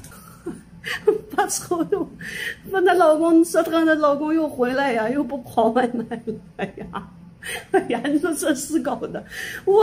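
A middle-aged woman talks cheerfully and animatedly, close to the microphone.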